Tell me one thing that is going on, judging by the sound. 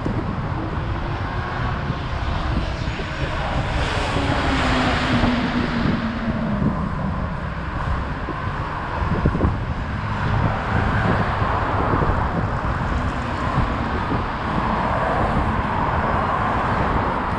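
City traffic hums steadily nearby.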